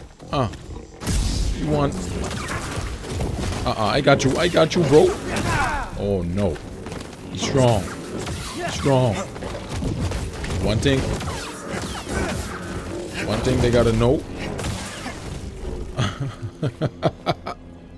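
Heavy blows strike with sharp thuds.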